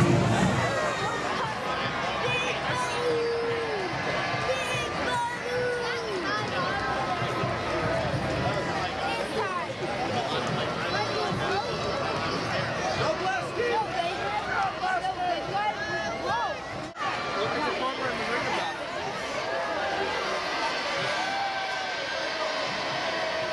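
Men and women in the crowd cheer and shout with excitement.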